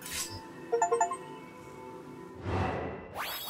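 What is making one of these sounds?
A shimmering magical tone rings out.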